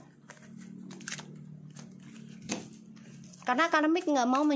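Playing cards riffle and slap together as they are shuffled by hand.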